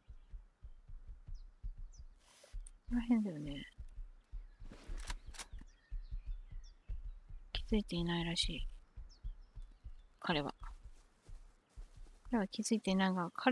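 Footsteps tread through grass at a steady pace.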